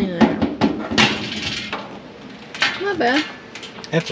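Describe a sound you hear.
A washing machine lid clunks open.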